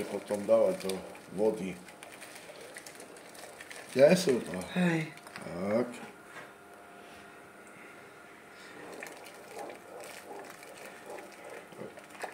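Noodles drop softly into a pot of hot water.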